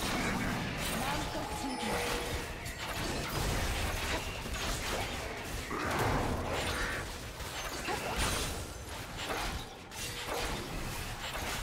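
Spell effects crackle and burst during a fight.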